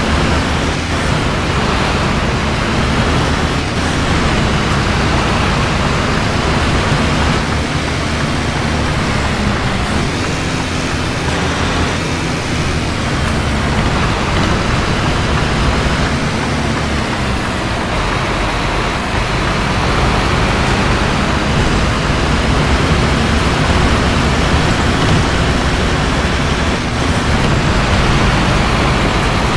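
A bus engine hums and rumbles steadily.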